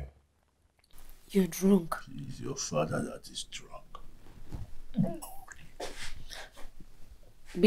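A man speaks in a low, troubled voice nearby.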